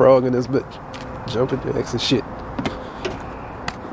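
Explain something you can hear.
Footsteps thud on wooden steps.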